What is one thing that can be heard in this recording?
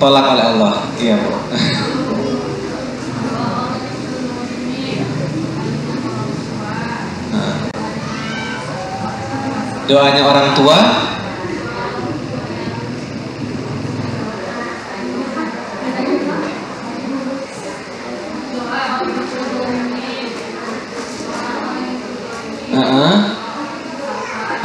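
A man speaks calmly and with animation into a microphone, close by.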